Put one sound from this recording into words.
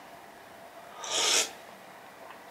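A man slurps soup noisily from a spoon.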